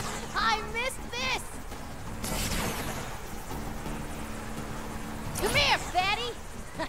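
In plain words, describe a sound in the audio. A crackling energy blast whooshes and hums.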